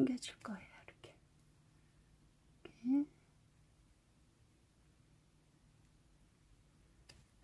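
A crochet hook rustles softly through yarn.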